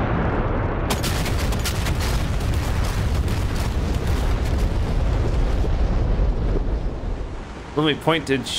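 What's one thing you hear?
Bombs explode in a rapid string of booming blasts with a deep, rolling rumble.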